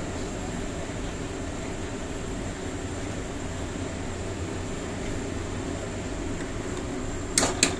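A plastic spatula stirs thick porridge in a pan.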